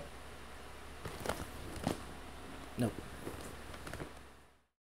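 A man shifts about on a leather sofa with soft creaks and rustles.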